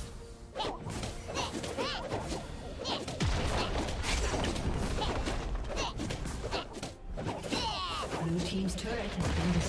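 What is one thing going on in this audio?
Game spell effects crackle and thud during a fight.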